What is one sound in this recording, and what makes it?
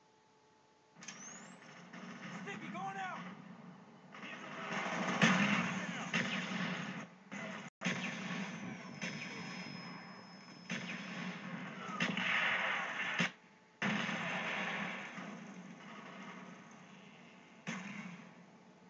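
Gunfire and explosions from a video game play through a television speaker.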